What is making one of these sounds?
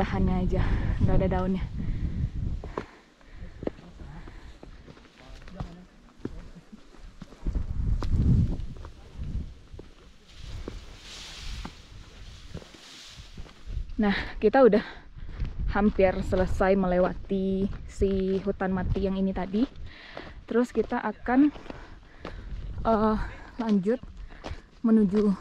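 Footsteps crunch on a dirt and stone trail.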